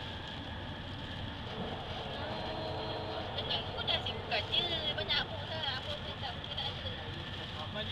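A train hums and rumbles steadily along the tracks.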